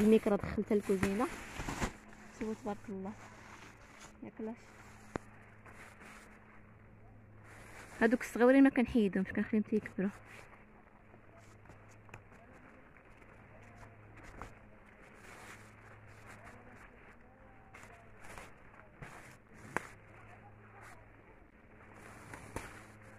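Leaves rustle softly against clothing.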